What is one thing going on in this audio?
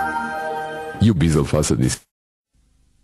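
A short jingle plays through a loudspeaker.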